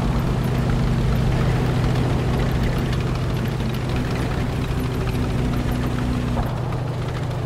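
Tank treads clatter over rough ground.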